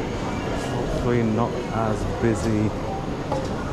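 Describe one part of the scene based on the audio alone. A man's voice speaks nearby, briefly and loudly.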